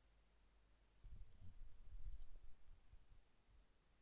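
A headset is picked up off a desk with a soft rustle and thump.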